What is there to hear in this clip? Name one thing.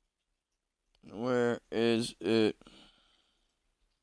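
A young man speaks briefly and with animation, close to a microphone.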